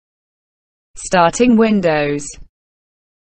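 A computer plays a short startup chime.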